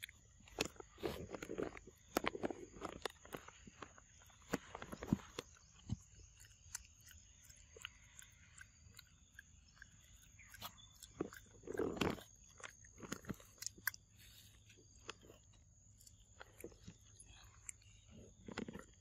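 A long-tailed macaque crunches peanuts.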